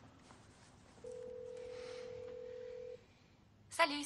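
A phone line rings with a steady tone.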